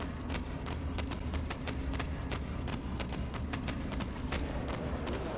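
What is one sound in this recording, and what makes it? Quick footsteps run on a stone floor.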